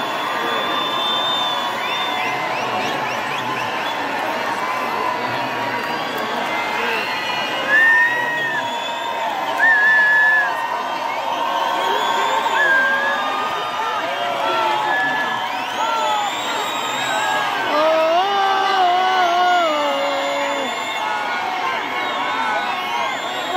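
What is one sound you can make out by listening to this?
A large crowd sings along loudly in a big echoing arena.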